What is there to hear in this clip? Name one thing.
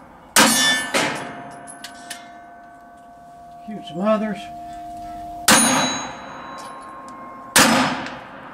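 Steel targets ring with a clear tone after being hit.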